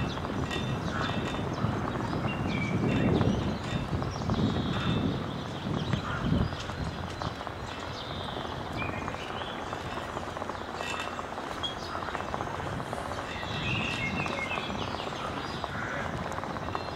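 Wind blows across an open outdoor space.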